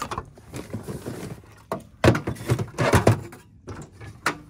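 A metal panel clatters as it is lifted and set in place.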